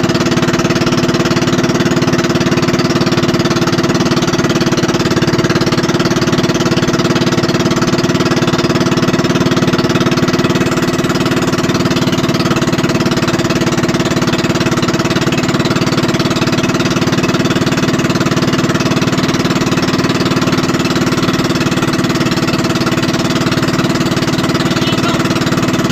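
Water splashes and rushes along a boat's hull.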